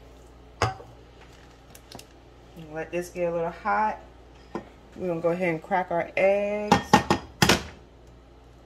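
A small glass jar clinks and knocks as it is handled.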